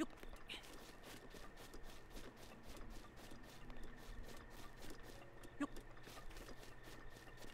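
Quick footsteps patter over grass at a steady running pace.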